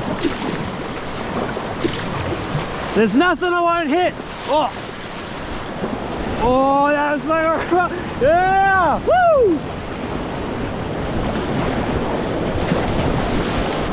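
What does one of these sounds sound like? A paddle splashes through water.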